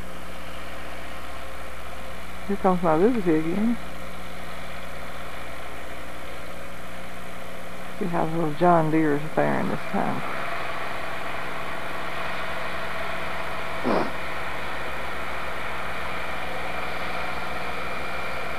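A tractor engine rumbles, drawing closer.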